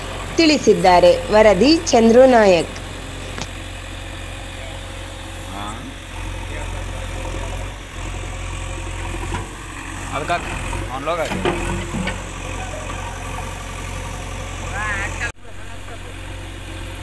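A digger's diesel engine rumbles steadily.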